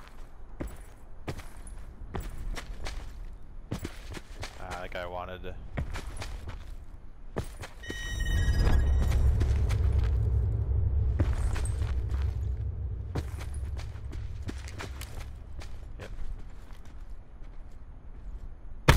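Footsteps crunch quickly over dry ground.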